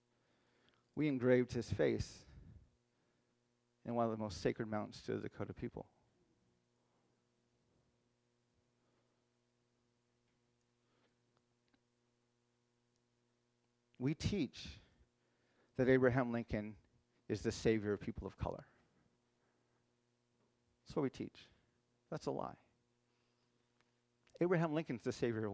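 A man speaks calmly into a microphone in a hall, pausing between phrases.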